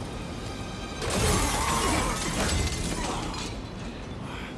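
A heavy weapon swings and strikes with a loud crash.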